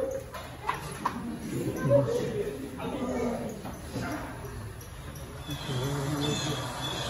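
A crowd of people murmurs quietly.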